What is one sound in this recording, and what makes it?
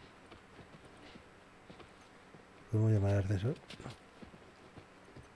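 Footsteps scuff softly on a gritty floor.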